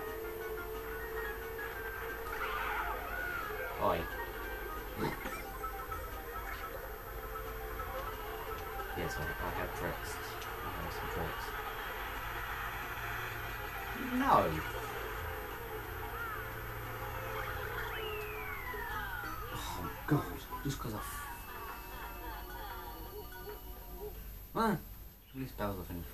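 Upbeat video game music plays through television speakers.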